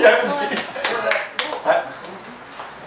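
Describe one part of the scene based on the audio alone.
A man laughs loudly into a microphone.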